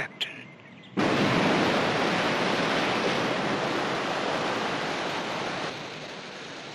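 Waves crash and roar against rocks.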